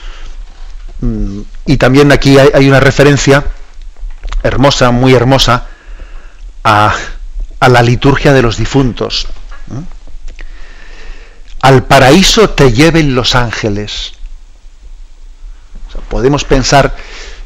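A middle-aged man speaks calmly and steadily into a close microphone.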